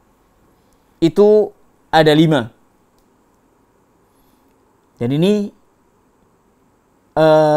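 An elderly man speaks calmly and slowly into a close microphone, with pauses between phrases.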